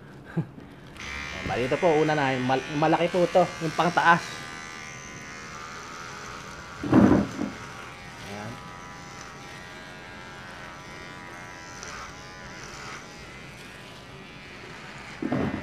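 An electric hair clipper buzzes steadily.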